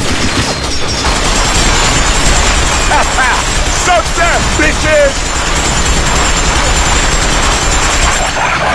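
A heavy machine gun fires long, rapid bursts.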